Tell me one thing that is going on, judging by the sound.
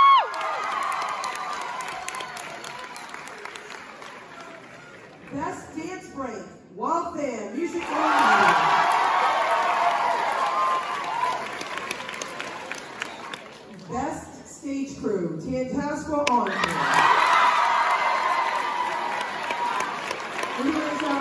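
A crowd cheers and screams loudly.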